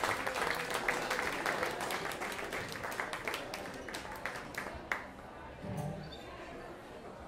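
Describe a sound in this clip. A string band plays a lively tune.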